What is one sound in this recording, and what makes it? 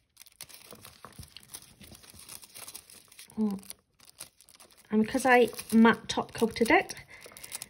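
Sticky foil crackles and peels close by.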